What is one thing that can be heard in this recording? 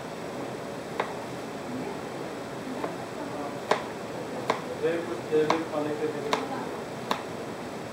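A chef's knife chops through a cucumber and knocks on a plastic cutting board.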